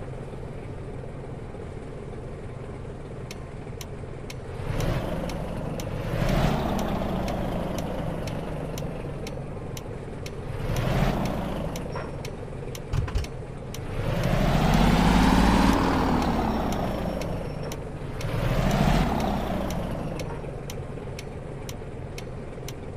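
A truck engine rumbles steadily, swelling louder and then easing off several times.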